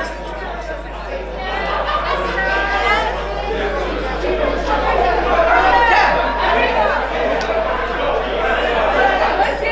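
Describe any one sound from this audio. People clap their hands in rhythm.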